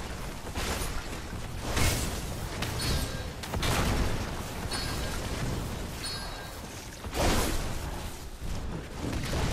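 Blasts and magical impacts burst and crackle in a game battle.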